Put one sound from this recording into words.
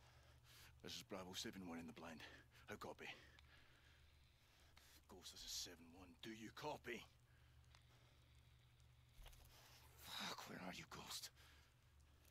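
A man speaks quietly and calmly into a radio headset, close by.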